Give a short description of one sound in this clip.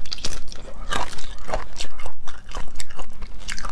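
Prawn shell cracks and crinkles as hands peel it close to a microphone.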